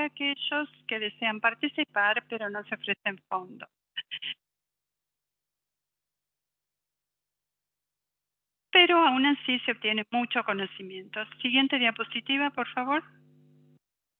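A woman speaks calmly through an online call microphone.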